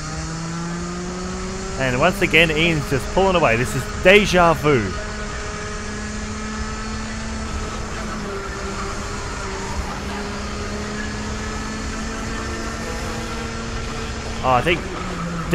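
A kart engine drones steadily close by.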